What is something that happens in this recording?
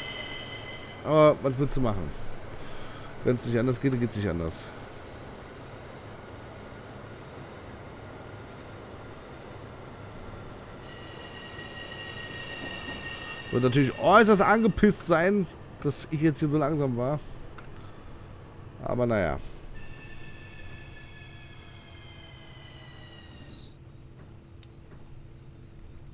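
An electric train hums steadily as it rolls along the tracks.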